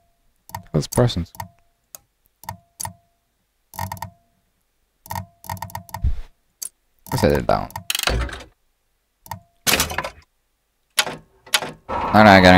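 Short game menu clicks and chimes sound in bursts.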